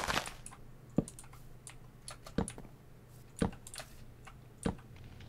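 Wooden blocks knock softly as they are set down.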